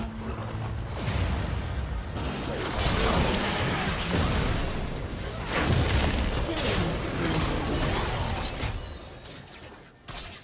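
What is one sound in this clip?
Magic blasts and blows crackle and clash in a busy video game battle.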